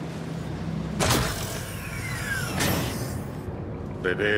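A heavy metal door slides open with a loud hiss.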